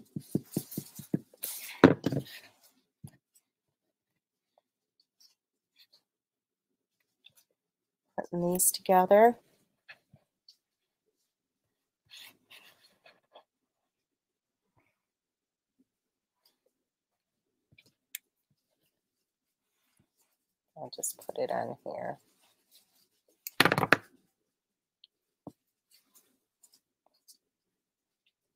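Small paper pieces rustle and tap as they are moved about.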